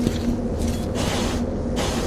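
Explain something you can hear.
A metal drawer scrapes as it slides open.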